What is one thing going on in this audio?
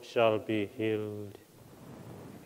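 A man sings a short phrase in an echoing hall.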